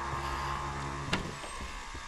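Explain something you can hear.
A wooden door handle clicks.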